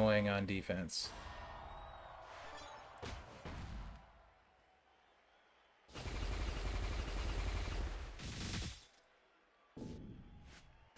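Game sound effects whoosh and thud in bursts.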